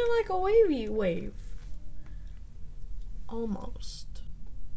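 A young woman talks animatedly close to the microphone.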